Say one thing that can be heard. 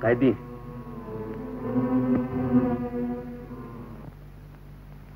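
Brass instruments play a sustained tune, heard through old, muffled sound.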